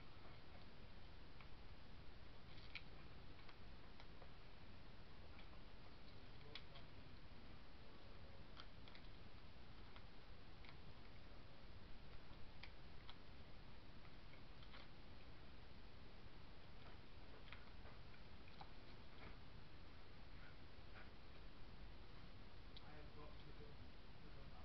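Hands rustle and handle small paper pieces and string up close.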